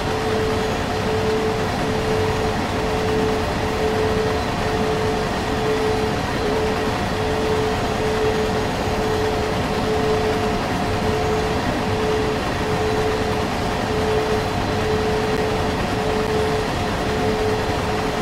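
A freight train rumbles steadily along the rails.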